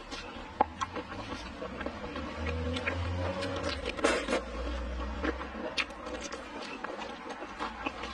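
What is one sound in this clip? Sauce squelches and drips as seafood is stirred in a bowl.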